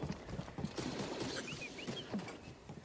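A small robot chirps and beeps.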